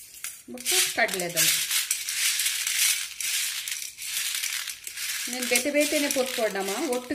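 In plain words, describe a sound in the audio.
Dry grains rattle and scrape against a metal plate.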